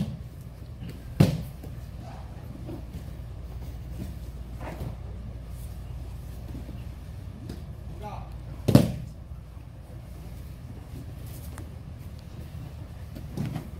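Cloth rustles as people grapple on the floor.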